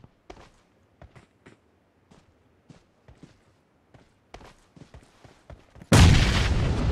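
Footsteps patter softly on the ground.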